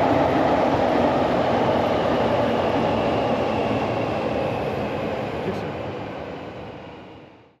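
A train rumbles past and slowly fades away.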